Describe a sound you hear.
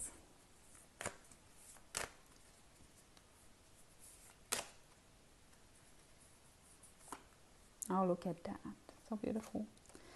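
Cards tap and shuffle in hands.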